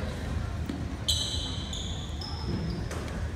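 A referee's whistle blows shrilly, echoing in a large hall.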